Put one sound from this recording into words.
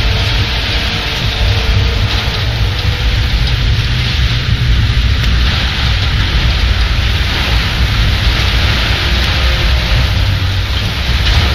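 Stormy waves crash and surge against a ship's hull.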